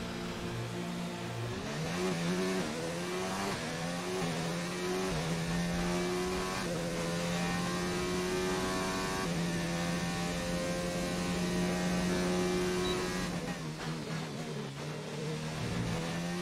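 A racing car engine screams at high revs, rising in pitch through each gear and dropping at each gear change.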